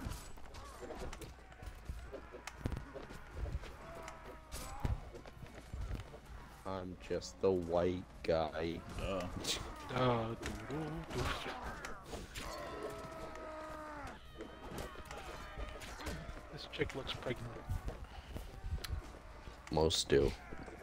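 Swords clash and strike against shields.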